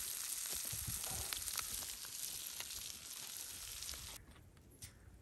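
A wood fire crackles and roars.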